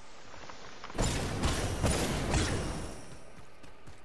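A heavy thud and a whoosh of dust come with a landing.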